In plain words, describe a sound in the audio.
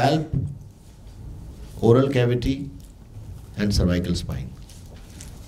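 A man speaks through a microphone in an echoing hall, pausing between phrases.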